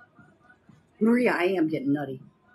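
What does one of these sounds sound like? A middle-aged woman speaks close by, with animation.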